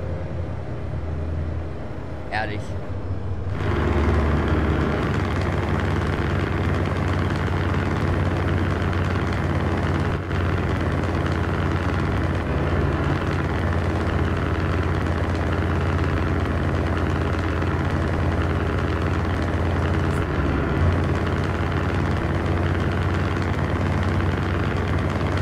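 Tyres rumble on a motorway.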